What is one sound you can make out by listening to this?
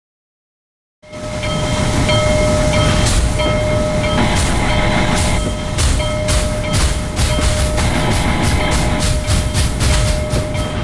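A steam locomotive chuffs, the puffs coming faster and faster.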